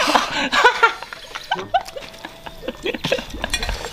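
A man chews and smacks his lips.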